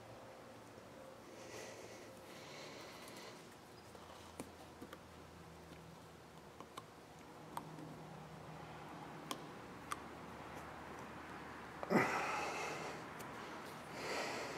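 Rubber parts rustle and squeak against each other by hand.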